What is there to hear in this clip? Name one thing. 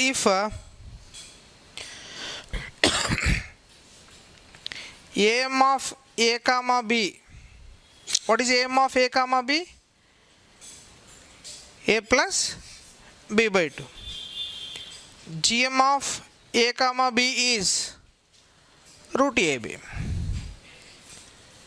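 A man lectures calmly and clearly through a close headset microphone.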